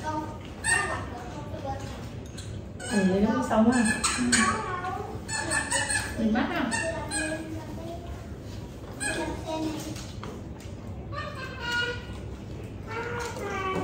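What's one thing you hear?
Several women talk and laugh together nearby with animation.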